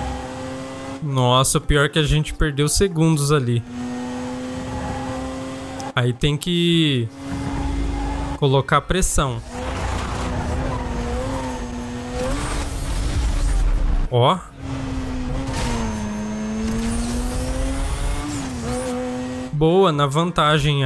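A car engine roars steadily at high speed, its pitch rising and falling with gear changes.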